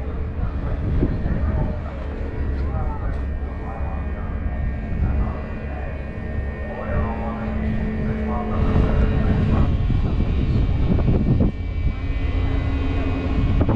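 A ship's engine rumbles low and steady.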